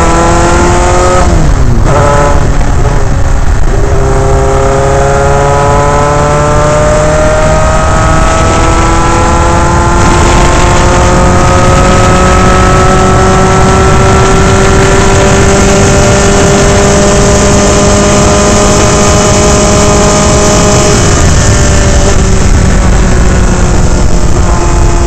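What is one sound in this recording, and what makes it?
A race car engine roars loudly, its pitch dropping sharply for a gear change and then climbing steadily as it accelerates.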